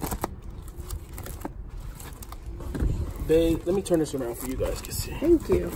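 Plastic binder pages crinkle and rustle as they are turned.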